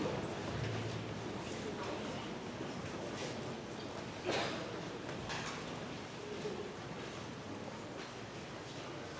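An orchestra plays in a large hall.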